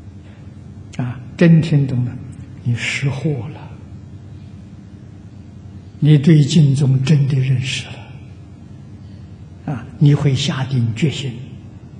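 An elderly man speaks calmly and slowly into a microphone, with long pauses.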